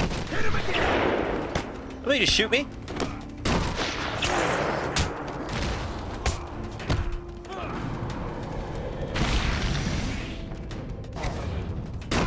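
Punches and kicks land with heavy thuds in a fight.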